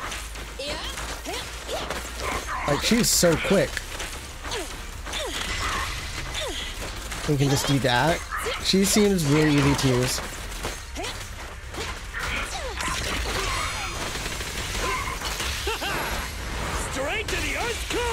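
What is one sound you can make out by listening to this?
Electric zaps and gunshots crackle in a game fight.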